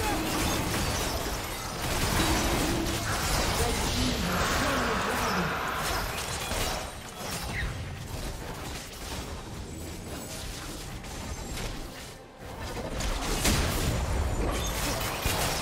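Game spell effects whoosh and crackle.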